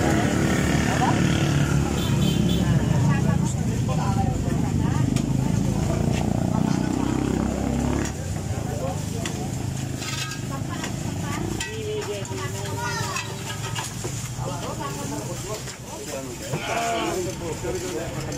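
A metal tire lever scrapes and clicks against a bicycle wheel rim.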